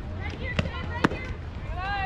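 A bat strikes a ball with a sharp crack.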